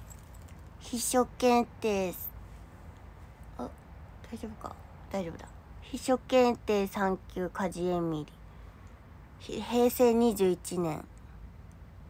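A young woman speaks close by, in an animated way.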